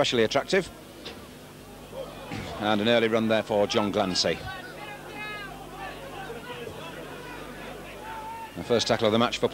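A large crowd murmurs in the distance outdoors.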